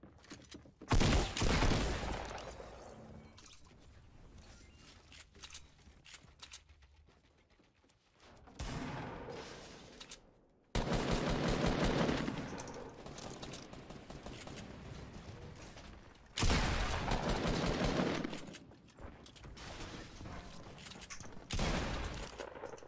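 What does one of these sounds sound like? Game building pieces snap into place with loud bursts.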